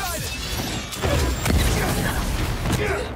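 A fiery explosion booms.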